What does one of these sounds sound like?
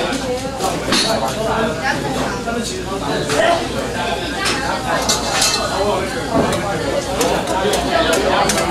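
Metal bowls and utensils clink and scrape.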